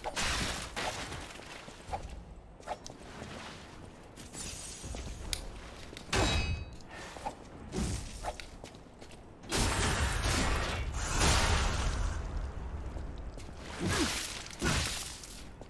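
Swords clash and slash in a fierce fight.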